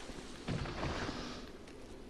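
A fiery blast whooshes and crackles.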